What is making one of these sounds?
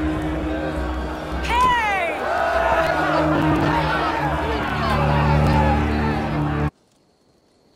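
A man shouts loudly and cheerfully.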